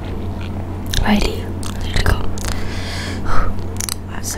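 A young woman bites into crunchy food close to a microphone.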